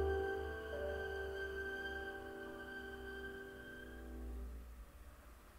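A violin and a piano hold a final chord that rings out and fades.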